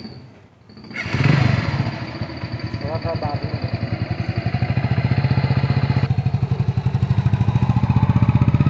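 A motorcycle engine starts and idles with a steady throb.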